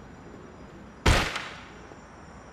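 A door is kicked open with a loud bang.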